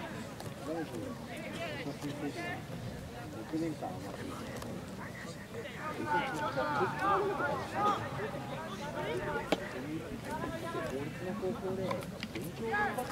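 A crowd of spectators shouts and calls out across an open outdoor field.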